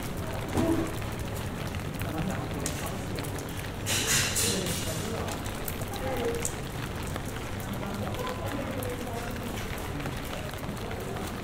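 Light rain patters on an umbrella overhead, outdoors.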